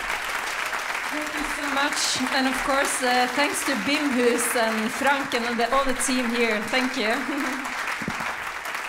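People in the audience cheer and whoop.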